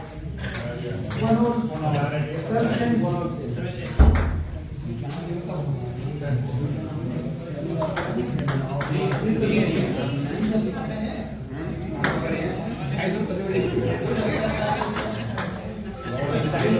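Young women and men chatter nearby in a small room.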